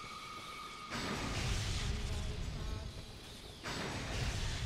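A crackling bolt of lightning bursts and sizzles.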